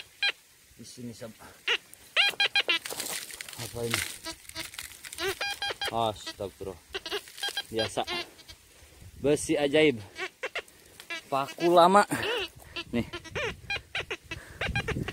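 A metal detector beeps in short, repeated tones.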